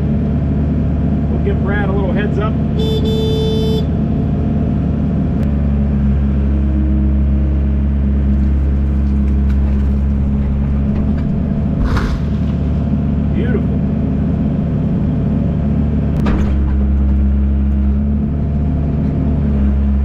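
A diesel engine rumbles steadily from inside an excavator cab.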